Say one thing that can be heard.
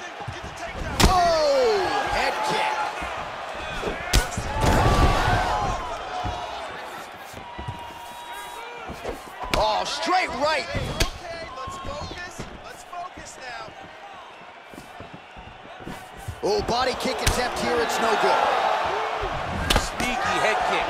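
Punches and kicks land with sharp thuds.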